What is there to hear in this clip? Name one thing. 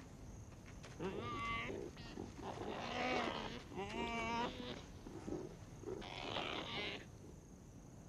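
Young animals whimper and whine up close.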